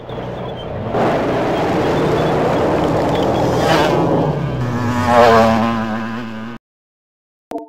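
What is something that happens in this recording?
A vehicle engine roars and rumbles.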